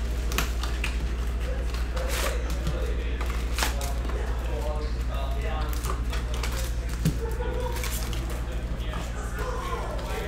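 Cardboard rustles as packs are lifted from a box.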